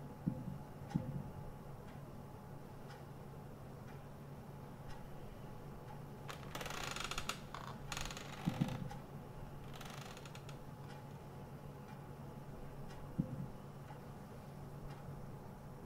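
Soft game clicks sound as puzzle pieces are moved.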